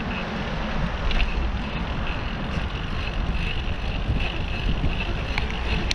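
Bicycle tyres hum along a smooth road.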